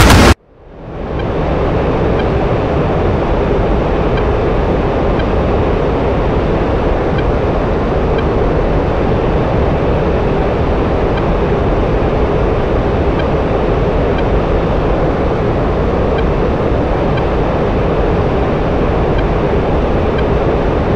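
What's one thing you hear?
A fighter jet engine roars steadily, heard from inside the cockpit.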